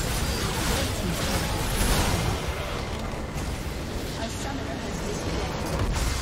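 Game spell effects whoosh and clash in a busy battle.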